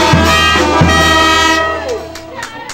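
A brass band plays loudly outdoors, then stops.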